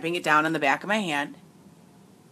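A woman speaks loudly and with animation close to the microphone.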